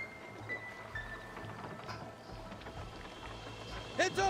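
Water laps gently against a wooden raft.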